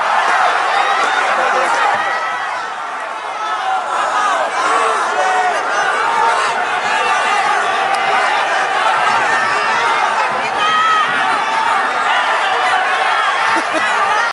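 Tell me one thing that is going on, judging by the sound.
A crowd of fans cheers and chants loudly throughout a large open stadium.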